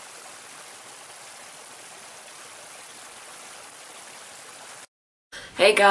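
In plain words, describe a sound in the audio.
A small stream of water rushes and splashes over rocks.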